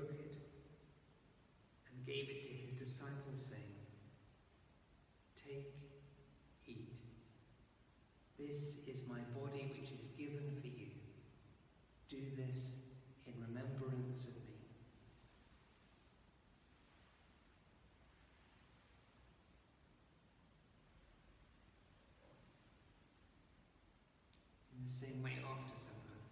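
An elderly man chants slowly in a large echoing hall, heard through a microphone.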